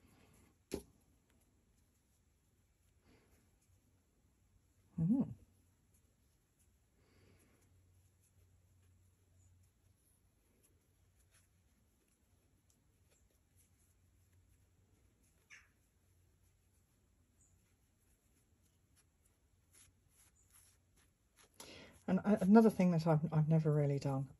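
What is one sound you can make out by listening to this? Fingers softly rustle and rub a strip of paper.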